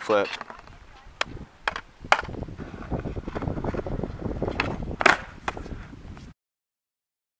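A skateboard clatters on concrete.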